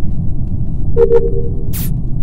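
A short electronic chime sounds.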